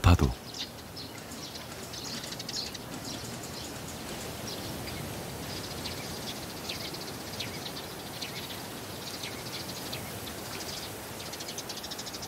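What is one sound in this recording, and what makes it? Wind rustles through tall grass outdoors.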